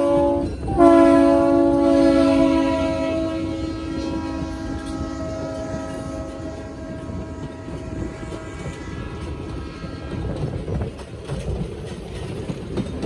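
Train wheels rumble and clack along the rails.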